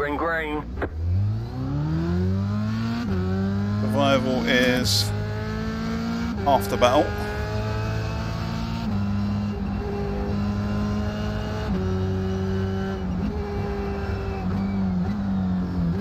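A racing car engine revs up and climbs through the gears.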